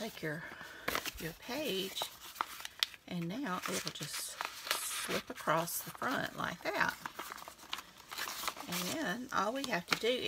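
Paper rustles and flaps as it is handled.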